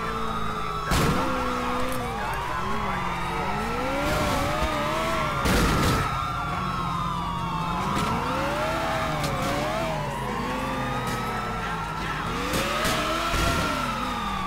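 A car crashes into a police car with a loud thud.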